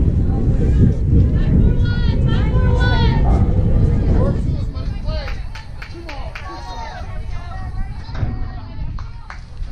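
Young women shout and cheer from a distance.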